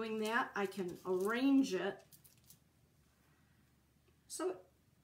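A middle-aged woman talks calmly, close by.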